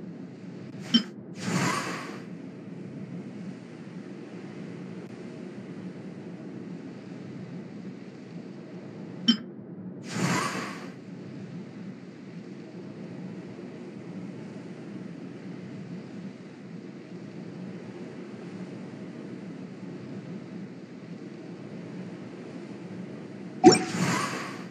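A short game menu click sounds.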